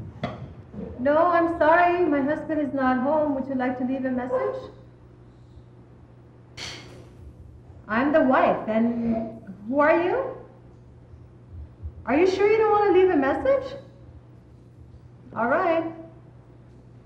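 A young woman speaks nearby in short bursts with pauses, sounding worried.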